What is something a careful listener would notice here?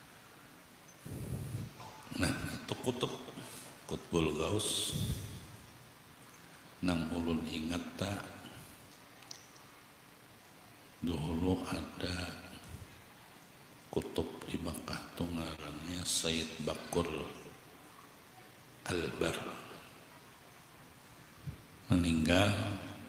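An elderly man chants a prayer into a microphone, in bursts with pauses.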